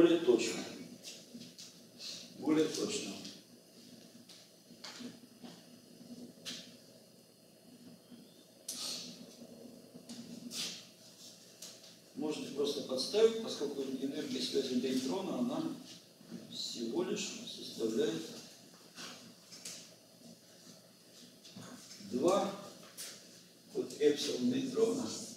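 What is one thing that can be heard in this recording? An elderly man speaks calmly in a lecturing tone, close by.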